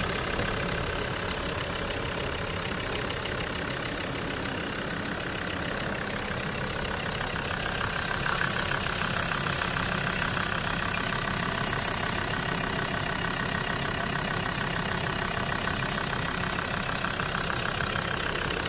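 A diesel engine idles with a steady, rattling clatter close by.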